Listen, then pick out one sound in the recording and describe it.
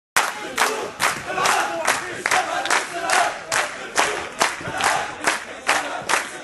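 A large crowd claps in rhythm in a big echoing hall.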